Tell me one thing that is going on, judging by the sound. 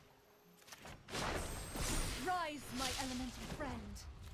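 A magical shimmer sparkles and rings.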